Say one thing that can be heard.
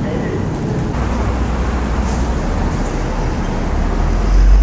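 A diesel fire truck pulls away.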